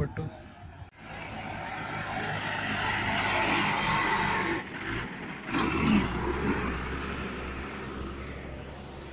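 A heavy truck drives past on the road with a loud, rumbling engine that rises and fades.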